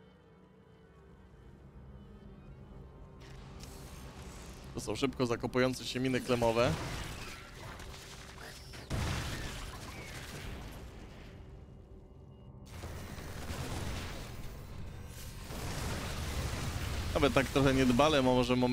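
Game units fire and explode in a battle.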